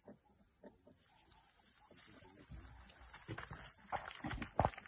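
A leopard's claws scrape and scratch on tree bark as it climbs.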